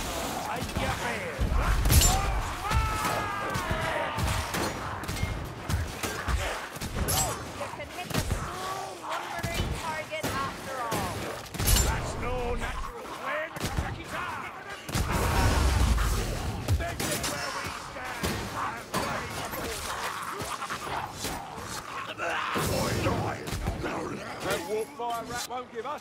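Blades clash and strike repeatedly.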